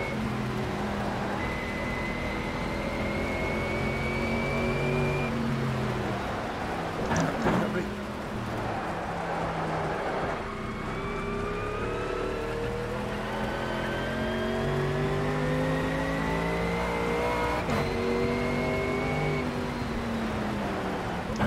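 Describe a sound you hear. A racing car engine roars, rising in pitch and dropping sharply with each gear change.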